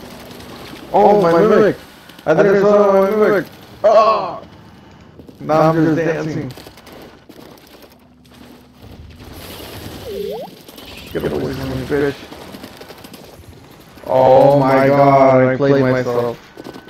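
A man talks with animation into a close microphone, in bursts.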